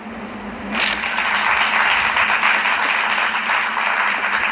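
Short bright chimes ring out one after another in a game as rating stars pop up.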